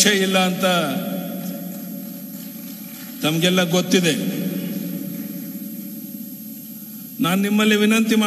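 An elderly man speaks forcefully into a microphone over loudspeakers, with a long echo.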